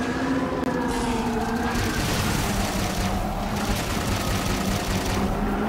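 A flying craft's engine roars steadily.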